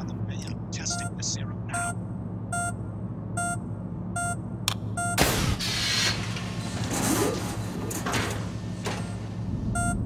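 A heart monitor beeps at a steady pace.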